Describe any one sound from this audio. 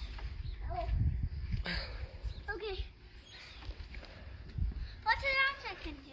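A young girl squeals and calls out in a high voice.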